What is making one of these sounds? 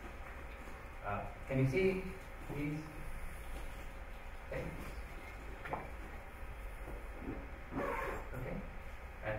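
A man speaks calmly in a room with some echo, with pauses between phrases.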